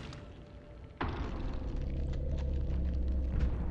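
A low, steady rumble swells.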